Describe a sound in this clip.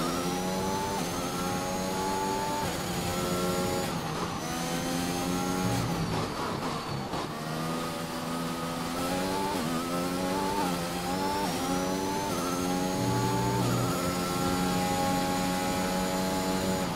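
A racing car engine screams at high revs, rising through each gear and dropping at every shift.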